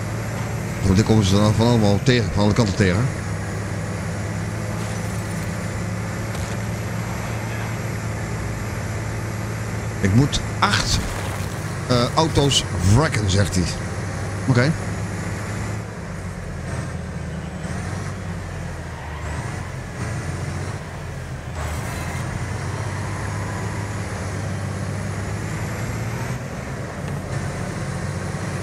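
A bus engine drones steadily.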